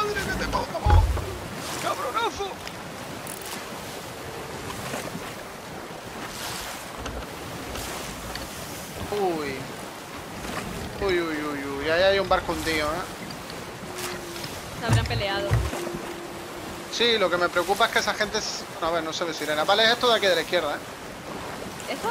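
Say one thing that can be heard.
Ocean waves wash and roll against a wooden ship.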